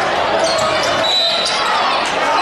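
A referee blows a short, shrill whistle.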